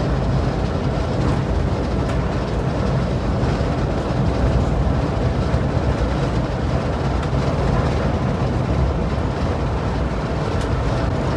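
A bus engine hums steadily while driving on a highway.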